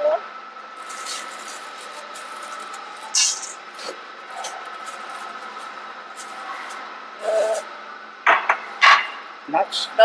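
A metal spoon scrapes and clinks against a steel bowl.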